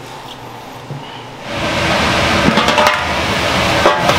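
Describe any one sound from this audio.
A metal pot lid clanks.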